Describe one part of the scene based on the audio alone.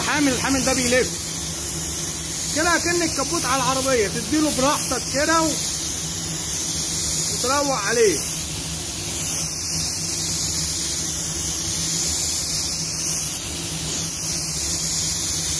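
A spray gun hisses steadily.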